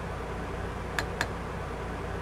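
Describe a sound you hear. A cab switch clicks twice.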